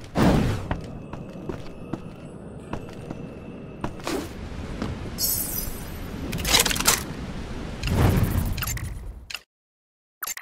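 Video game effects whoosh and thud in bursts.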